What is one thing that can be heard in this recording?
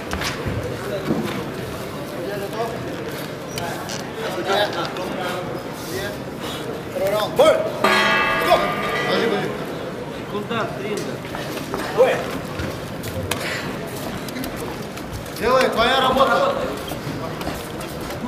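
A crowd murmurs and calls out in the background.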